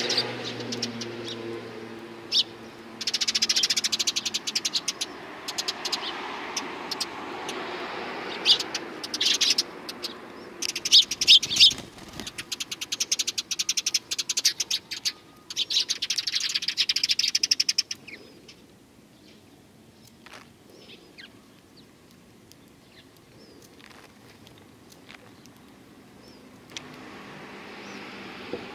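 A small bird pecks rapidly at seeds in a hand, with quick light taps.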